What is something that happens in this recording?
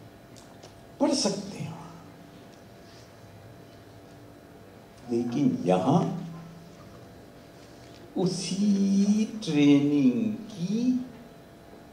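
A middle-aged man speaks calmly into a microphone in short phrases, with pauses, in a room with a slight echo.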